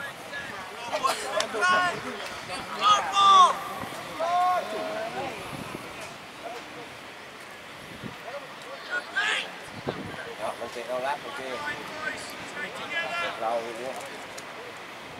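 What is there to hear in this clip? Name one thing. Young men shout to each other across an open field, some way off.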